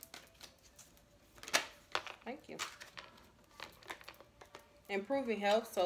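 Playing cards riffle and slap as they are shuffled close by.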